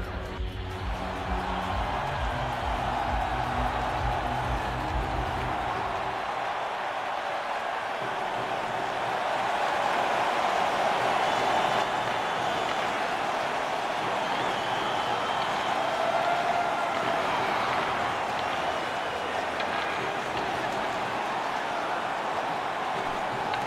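A large crowd cheers and murmurs steadily in a big echoing arena.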